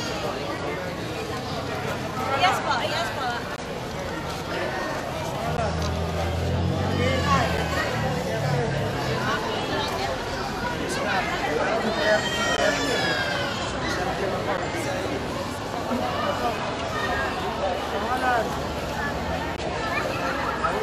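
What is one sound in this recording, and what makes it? A crowd of men and women talk and shout over one another nearby.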